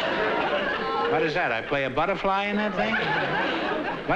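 An elderly man speaks over a microphone with a drawn-out, playful voice.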